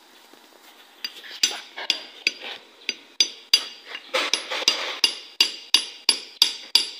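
A hammer strikes the handle of a screwdriver again and again, ringing on metal.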